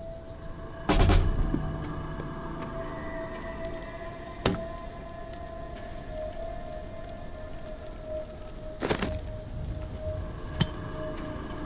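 Objects thump and clatter as they are picked up.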